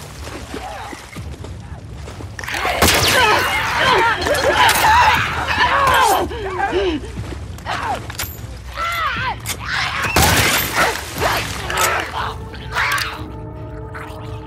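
Gunshots bang loudly in a reverberant space.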